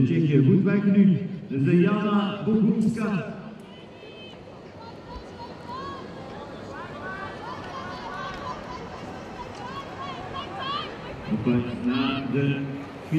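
Inline skates roll and stroke on asphalt.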